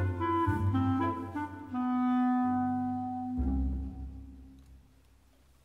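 An orchestra plays a slow passage in a large hall, with the notes fading away.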